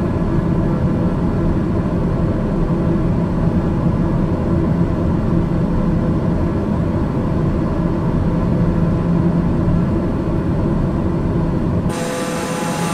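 A propeller engine drones steadily, muffled as if from inside a small aircraft cabin.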